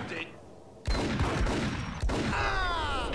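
A pistol fires a loud gunshot that echoes.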